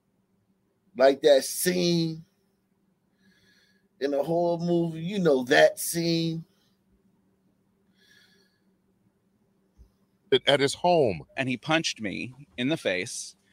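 An older man speaks calmly into a microphone, with pauses.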